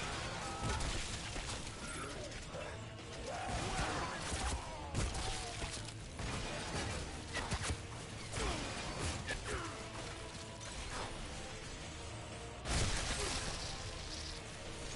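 A man talks into a headset microphone.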